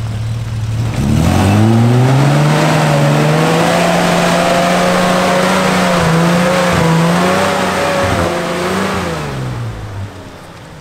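An engine revs hard and roars as a four-wheel drive climbs through mud.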